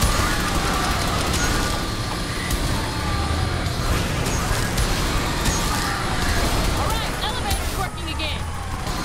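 A gunship's engines roar overhead.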